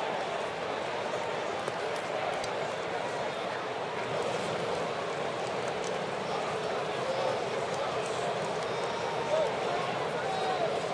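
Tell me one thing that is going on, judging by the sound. A stadium crowd murmurs and chatters steadily all around.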